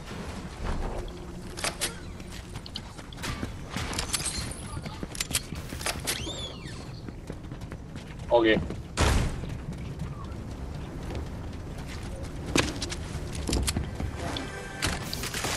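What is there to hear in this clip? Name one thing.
Footsteps patter on hard floors.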